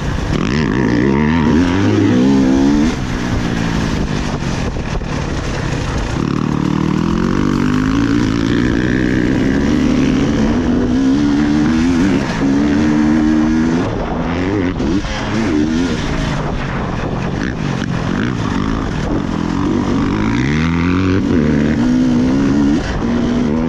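A dirt bike engine revs loudly close by, rising and falling as the rider shifts.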